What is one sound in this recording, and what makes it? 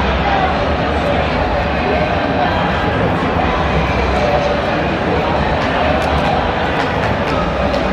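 Players slap hands together in high fives.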